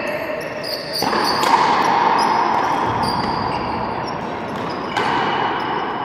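A frontenis racket strikes a ball with a sharp crack in a large echoing hall.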